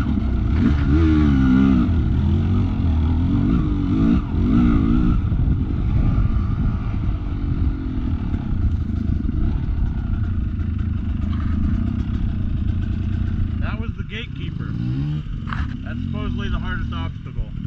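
A dirt bike engine revs and rumbles close by.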